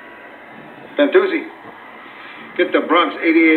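An older man speaks into a telephone.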